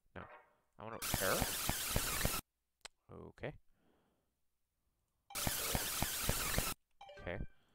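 Harsh digital static hisses in bursts.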